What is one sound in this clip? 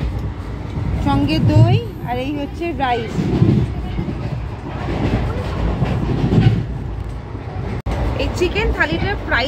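A young woman talks animatedly, close to the microphone.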